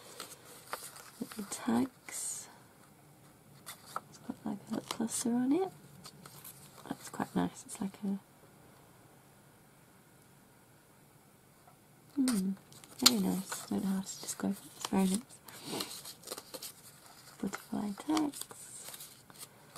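Paper cards rustle and shuffle as they are handled up close.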